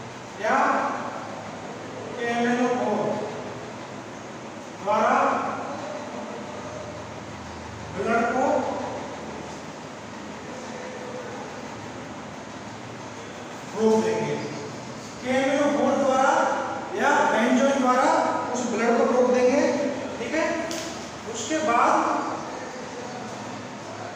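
A man speaks, explaining as if teaching.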